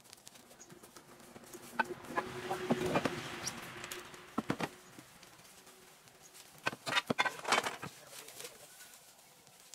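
Footsteps crunch on dry leaves and grass.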